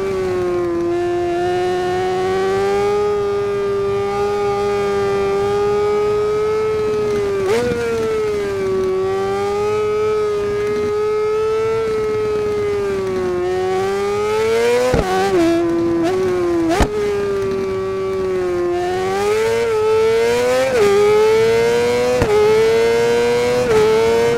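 An inline-four sport bike engine screams at high revs and shifts gears through corners.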